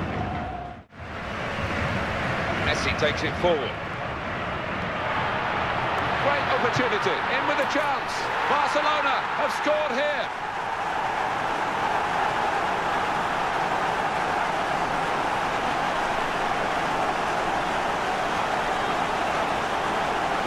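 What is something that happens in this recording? A large stadium crowd roars steadily outdoors.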